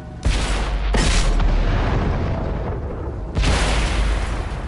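A shell explodes with a crashing roar that rumbles away.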